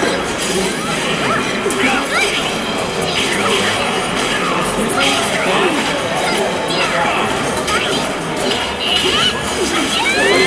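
Magical blasts burst and whoosh.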